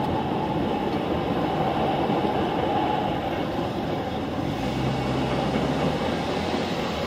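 Cars drive past over a railroad crossing.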